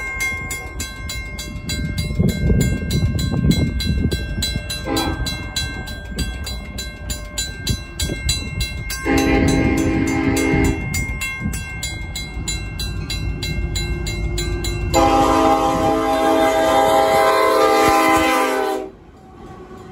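A crossing bell rings rapidly and steadily.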